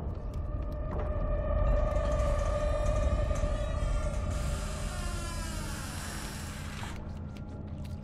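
A heavy metal door creaks slowly open.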